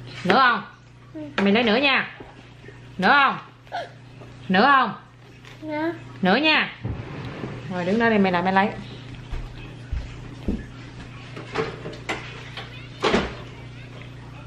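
A toddler babbles and chatters close by.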